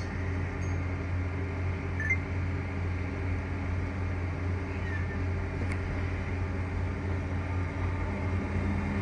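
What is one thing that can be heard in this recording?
An electric train's motor hums steadily while standing.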